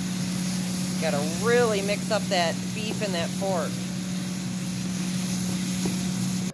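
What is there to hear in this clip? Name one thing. A spatula scrapes and stirs through food in a pan.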